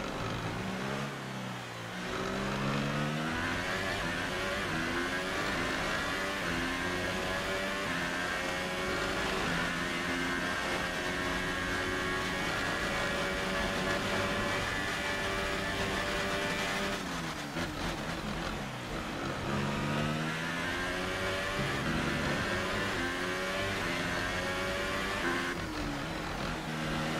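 A racing car engine screams loudly, rising in pitch through quick gear changes.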